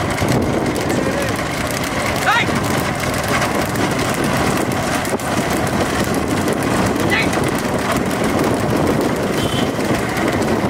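Wooden cart wheels rumble and rattle over a road.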